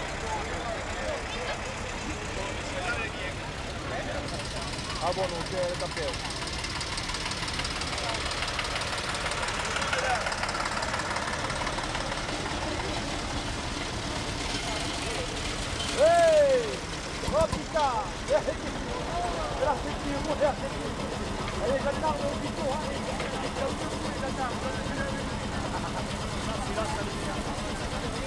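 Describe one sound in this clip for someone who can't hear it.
Old tractor engines rumble and chug as they drive slowly past.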